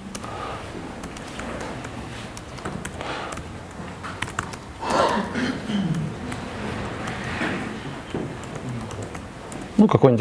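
Keys on a laptop keyboard click as a man types.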